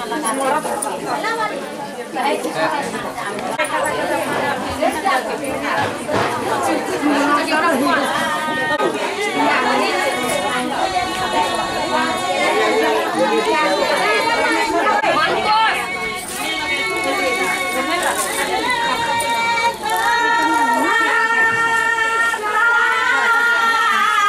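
A crowd of women and men chatter nearby.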